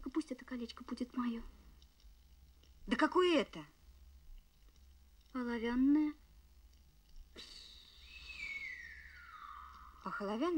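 A woman speaks in short, emotional phrases nearby.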